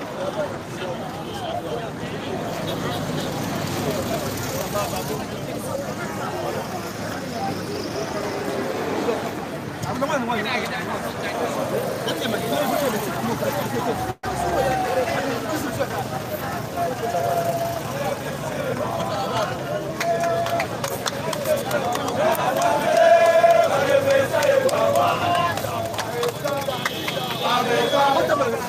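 A crowd of men and women chatters and shouts outdoors.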